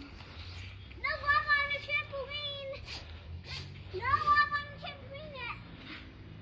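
A young girl talks in a high voice close by.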